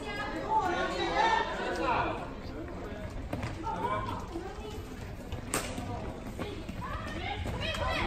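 Young women shout and call out to one another in a large echoing hall.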